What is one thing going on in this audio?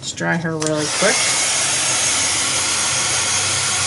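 A heat gun blows with a steady, loud whoosh.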